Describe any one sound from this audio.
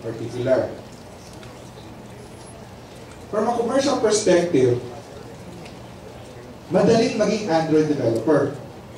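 A man speaks calmly into a microphone, heard over a loudspeaker in a large hall.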